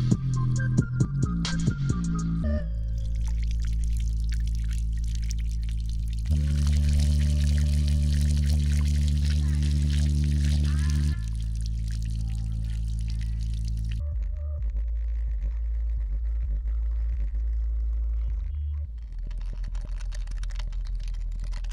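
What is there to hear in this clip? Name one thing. Music with deep bass plays from a small speaker.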